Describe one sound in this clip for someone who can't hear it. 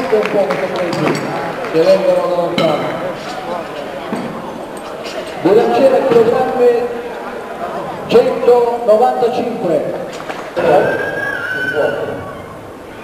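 Several men talk and call out loudly in a large echoing hall.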